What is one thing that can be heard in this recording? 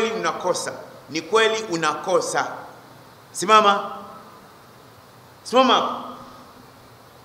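An elderly man preaches with emphasis into a microphone, in short bursts with pauses, in a reverberant room.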